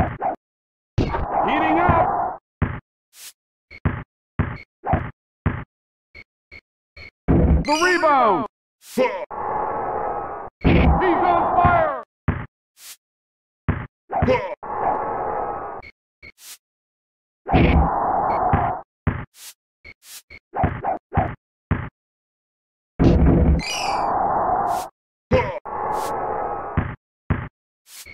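A crowd cheers and roars in bursts.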